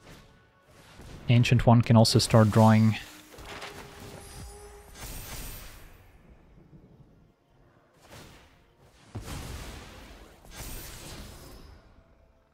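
A magical spell effect whooshes and shimmers.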